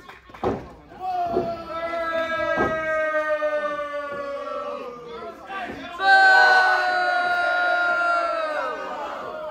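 A man's voice calls out loudly in long, drawn-out shouts.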